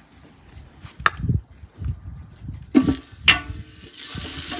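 A metal spoon clinks against a metal pot.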